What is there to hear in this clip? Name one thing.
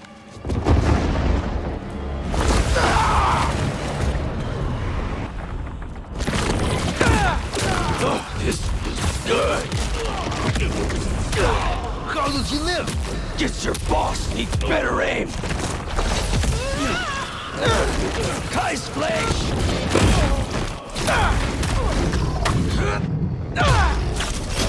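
Fires crackle and roar.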